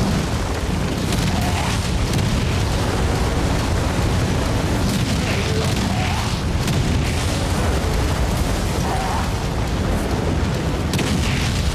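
Heavy blows thud as two giants fight.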